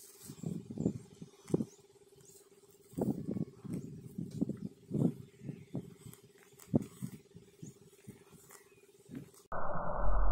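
A cow tears and munches grass close by.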